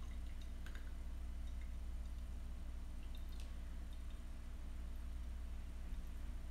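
Tea trickles softly as it is poured into a glass pitcher.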